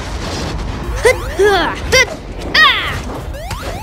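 A cartoon boy's voice grunts with effort.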